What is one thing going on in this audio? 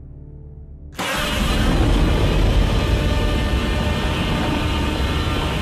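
A huge creature lets out a loud, rumbling roar.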